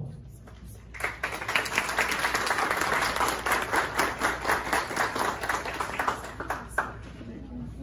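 People clap and applaud.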